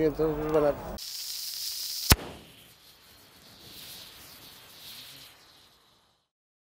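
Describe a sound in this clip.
A flare hisses and burns.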